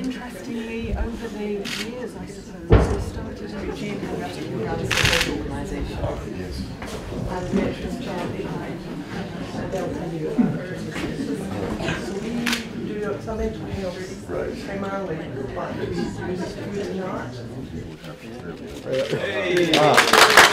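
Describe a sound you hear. An elderly man talks calmly.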